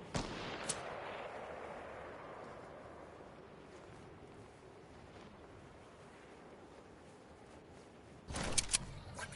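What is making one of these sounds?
Wind rushes past steadily and slowly fades.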